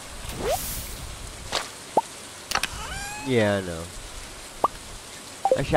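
Short electronic game blips sound.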